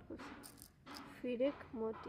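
Small beads rattle in a bowl.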